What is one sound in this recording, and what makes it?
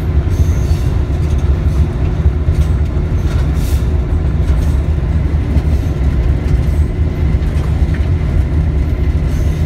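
A diesel locomotive engine rumbles steadily, heard up close.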